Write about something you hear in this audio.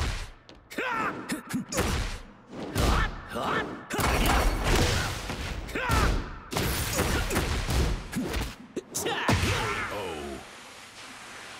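Heavy punches and kicks land with loud thuds and smacks.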